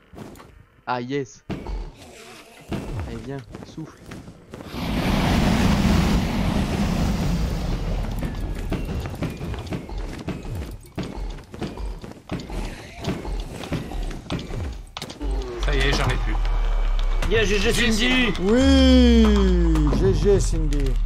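A large dragon roars loudly.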